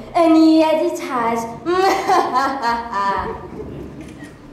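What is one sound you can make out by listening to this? A group of young girls sings together in a large echoing hall.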